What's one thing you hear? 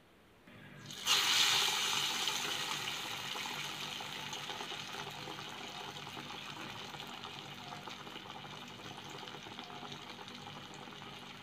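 Hot oil sizzles and crackles in a pan, slowly quietening.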